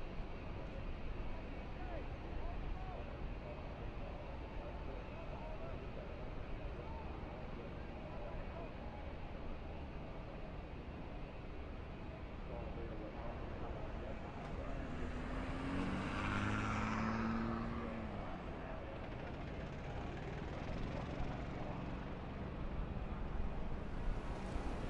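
A race truck's engine idles with a low, steady rumble.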